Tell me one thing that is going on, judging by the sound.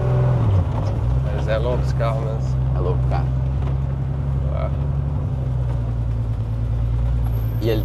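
A man talks casually in a car.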